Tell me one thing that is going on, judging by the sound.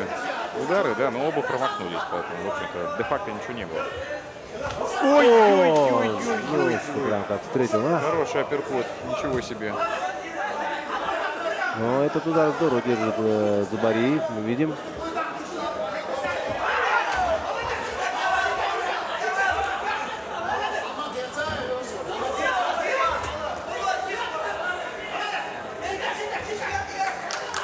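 Bare feet shuffle and thud on a mat.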